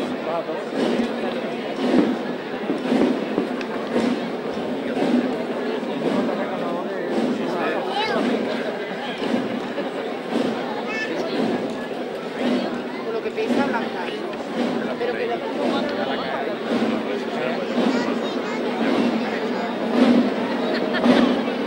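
A crowd of men and women murmurs and chats outdoors.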